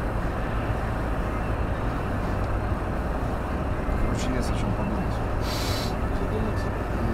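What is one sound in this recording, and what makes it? Oncoming vehicles rush past.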